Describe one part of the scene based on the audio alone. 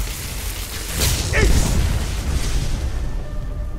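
A fireball bursts with a roar.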